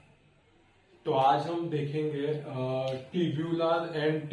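A young man speaks calmly and clearly close to a microphone, as if lecturing.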